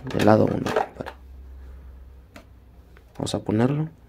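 A cassette clatters into a tape deck.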